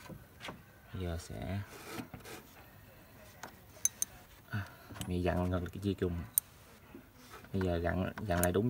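A socket wrench ratchets in quick bursts of clicking.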